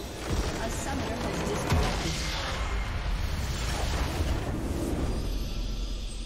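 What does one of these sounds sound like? A crystal structure shatters with a loud crash.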